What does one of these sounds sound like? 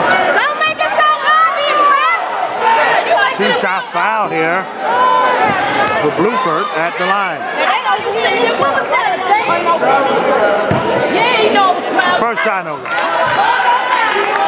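A crowd of spectators shouts and chatters loudly in an echoing gym.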